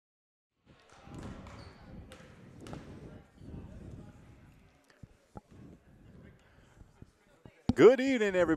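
Men talk and call out at a distance in a large echoing hall.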